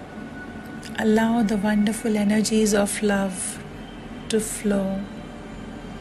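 A woman speaks briefly and calmly, close to a microphone.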